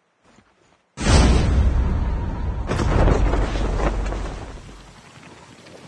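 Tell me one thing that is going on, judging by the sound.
Wind rushes loudly past, then fades away.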